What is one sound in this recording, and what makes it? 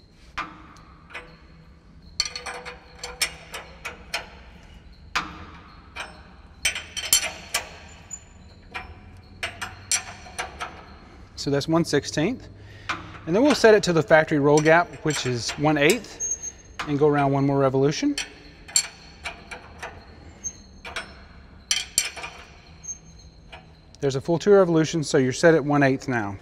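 Metal tools clink against metal parts.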